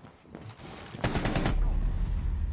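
A burst of rapid gunfire rings out close by.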